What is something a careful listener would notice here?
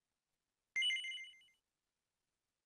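A game menu chimes as an option is confirmed.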